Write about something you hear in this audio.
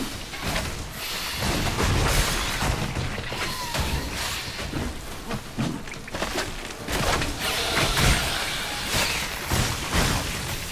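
A magical blast bursts with a rushing whoosh.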